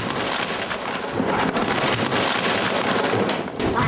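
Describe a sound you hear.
A wooden bookcase crashes down onto a sofa.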